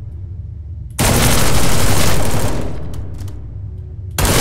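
A gun fires with loud blasts.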